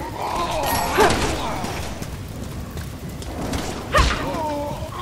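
A pistol fires loud shots.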